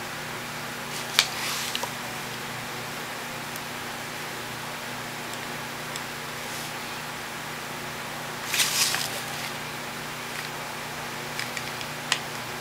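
A brush taps and brushes lightly on paper.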